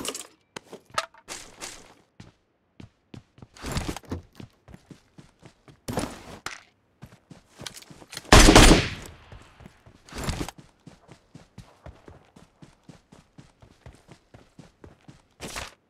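Footsteps thud quickly and evenly on the ground.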